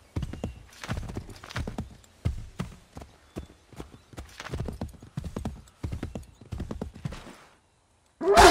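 Horse hooves thud rapidly on soft ground.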